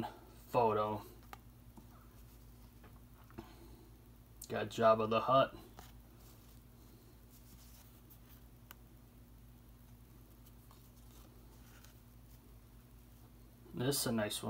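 Paper cards rustle and slide against each other as they are handled.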